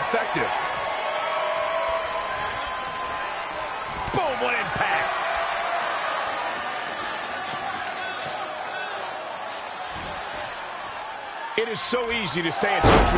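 A large crowd cheers and murmurs steadily in a big hall.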